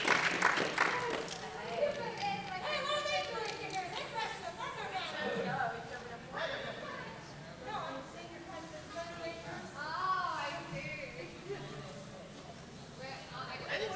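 A young woman talks with animation.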